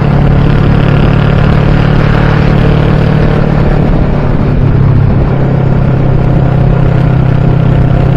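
A motorcycle engine rumbles steadily up close while riding.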